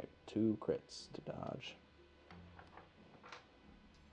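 Dice tumble and clatter softly onto a felt tray.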